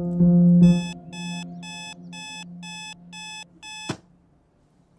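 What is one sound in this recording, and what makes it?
An alarm clock beeps in rapid repeated bursts, then stops abruptly.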